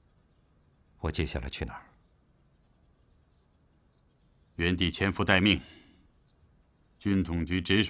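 Two middle-aged men talk calmly in turns, close by.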